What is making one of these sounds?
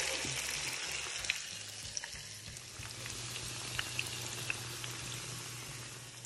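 Hot oil sizzles and crackles as food fries.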